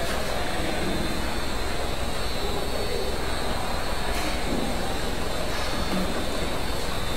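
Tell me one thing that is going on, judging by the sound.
A bottle labeling machine runs with a steady mechanical hum and clatter.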